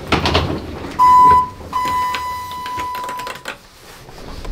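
An elevator button beeps with a steady tone.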